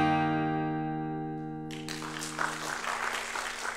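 An acoustic guitar chord rings out and fades in an echoing hall.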